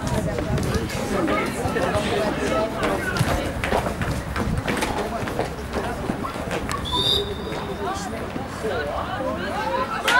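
Spectators talk close by.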